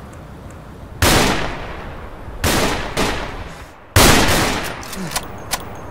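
A rifle fires loud single shots that echo and roll away.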